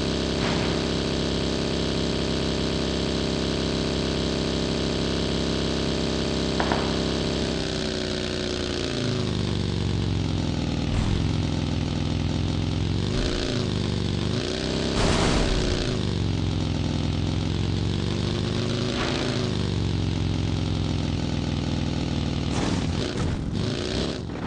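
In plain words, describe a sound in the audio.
A buggy engine drones steadily, rising and falling in pitch as it revs.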